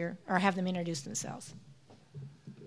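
A woman speaks calmly into a microphone over loudspeakers.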